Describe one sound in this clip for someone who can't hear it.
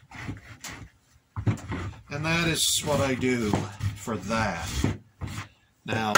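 A sanding block rubs back and forth on sandpaper over wood.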